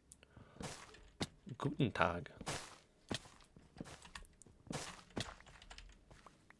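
Blocks break with quick crunching thuds.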